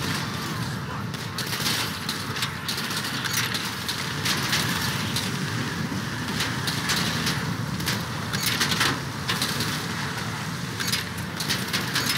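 A car engine runs and revs as the car drives off.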